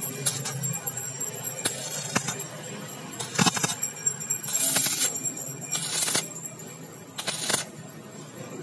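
An electric welder crackles and buzzes in short bursts.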